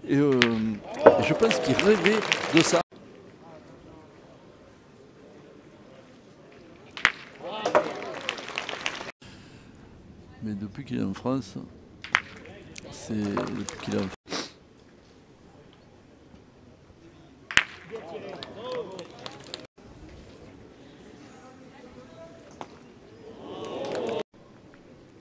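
A crowd cheers and applauds.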